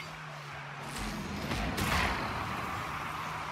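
A loud burst booms and then fades.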